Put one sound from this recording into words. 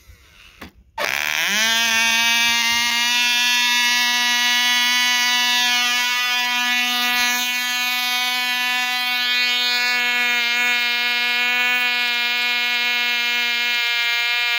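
A small model airplane engine starts and buzzes loudly at a steady high pitch.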